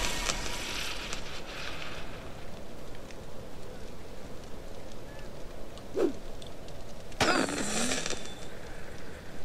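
Steady rain falls outdoors.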